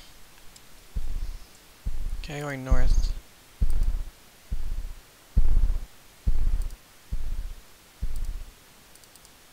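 Heavy footsteps thud at an even pace.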